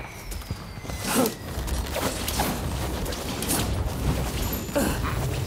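Whooshing sounds sweep past as a figure swings through the air.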